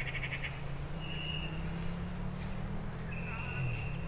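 Footsteps rustle through grass and leaves.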